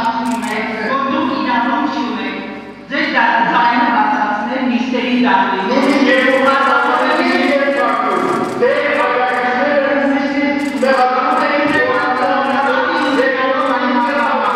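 An older man speaks loudly and angrily through a microphone in an echoing room.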